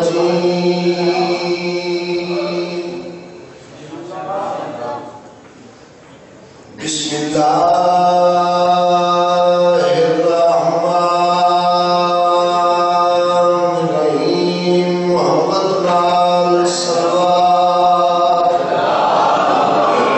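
A man chants a mournful lament loudly into a microphone, echoing through a loudspeaker.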